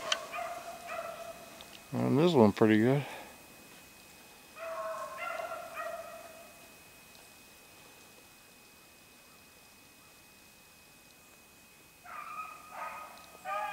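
A small bird chirps and trills nearby.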